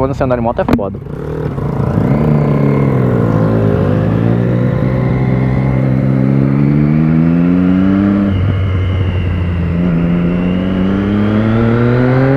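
A parallel-twin motorcycle accelerates, shifting up through the gears.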